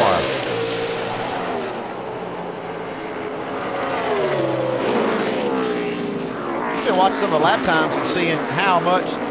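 Race car engines roar loudly, their pitch rising and falling through gear changes.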